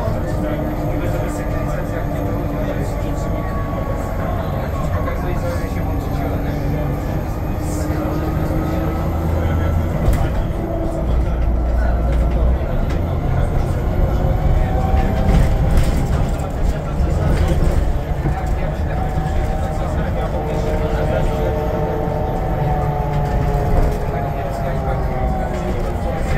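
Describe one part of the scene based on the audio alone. The bus body rattles and creaks over the road.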